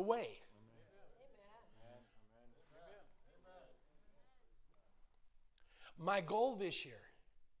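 An elderly man preaches with animation through a microphone in an echoing hall.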